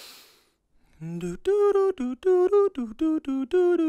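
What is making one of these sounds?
A man sings short, clipped notes close to a microphone.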